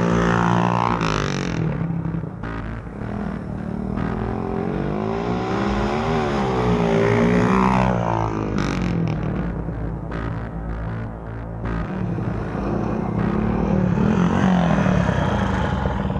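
A motorcycle engine revs and roars past, rising and falling in pitch.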